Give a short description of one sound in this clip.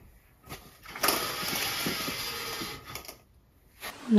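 A window slides open.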